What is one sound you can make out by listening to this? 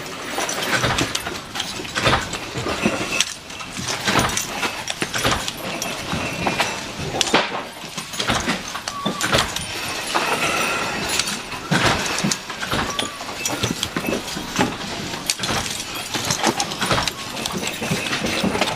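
Metal parts clink and clatter against each other.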